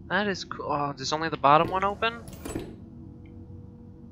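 A metal drawer slides shut.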